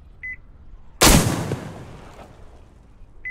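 A gunshot cracks loudly and echoes away.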